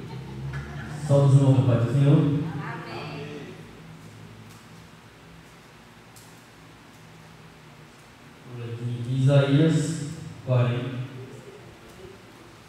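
A man speaks loudly into a microphone, heard through loudspeakers in an echoing room.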